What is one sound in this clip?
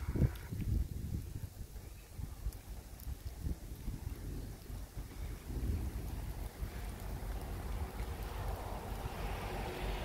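Wind blows outdoors, gusting against the microphone.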